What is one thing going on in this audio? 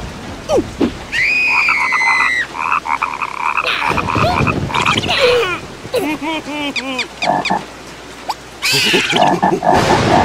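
A second cartoon creature screams back in a shrill voice.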